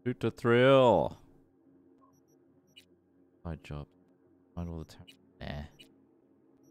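A young man speaks casually and close into a microphone.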